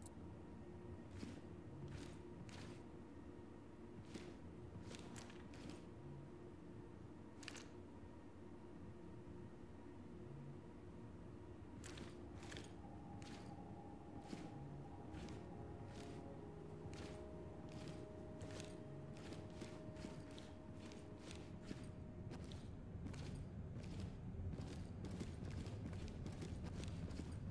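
Footsteps tread softly and steadily across a hard floor.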